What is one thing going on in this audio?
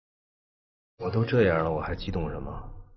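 A man answers in a low, wry voice.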